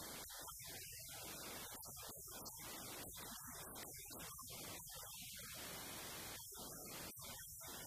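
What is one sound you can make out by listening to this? A man speaks calmly into a microphone in a large, echoing room.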